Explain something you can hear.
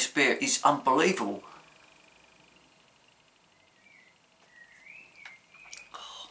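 A man sips a drink quietly.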